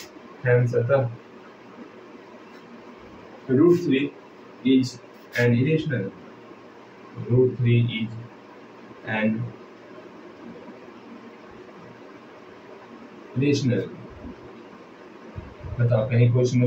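A man explains calmly into a close microphone, in short bursts with pauses.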